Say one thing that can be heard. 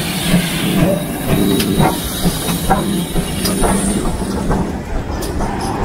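Steel wheels clatter over rail joints up close.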